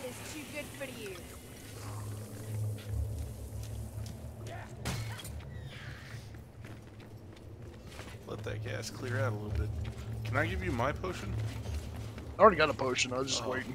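Footsteps run over a stone floor.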